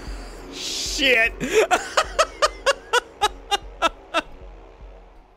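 A man laughs loudly into a close microphone.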